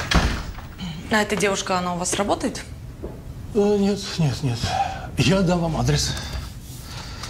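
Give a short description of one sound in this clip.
A man speaks in a low, firm voice, close by.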